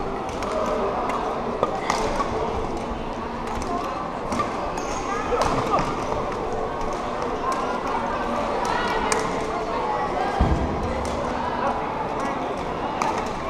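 Shoes squeak on a hall floor.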